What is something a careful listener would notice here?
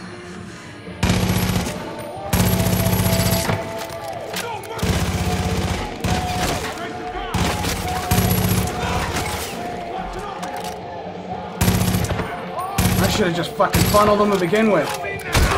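Rapid gunfire bursts ring out in loud volleys.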